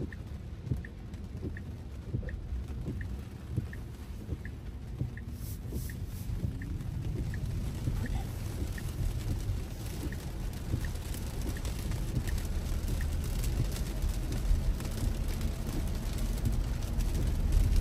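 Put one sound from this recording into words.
Windscreen wipers sweep back and forth.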